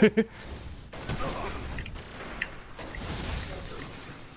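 Electric crackling bursts from a video game's lightning attack.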